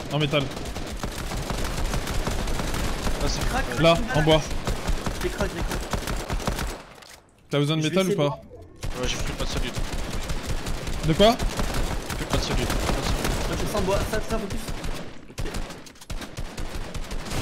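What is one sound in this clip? Gunshots crack rapidly from a video game.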